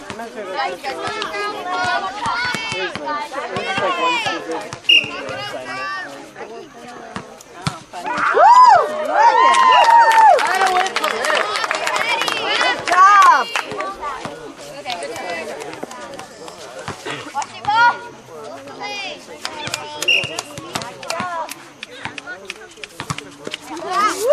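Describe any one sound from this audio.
A crowd of spectators chatters and cheers loudly outdoors.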